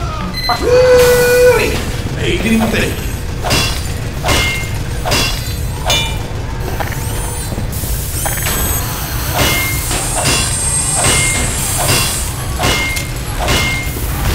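A wrench clangs repeatedly against metal.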